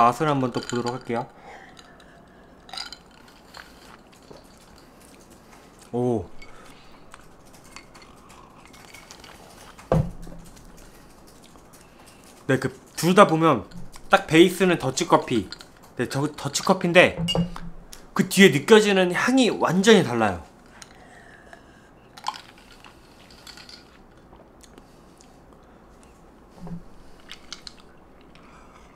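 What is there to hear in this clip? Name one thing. A young man sips a drink and swallows.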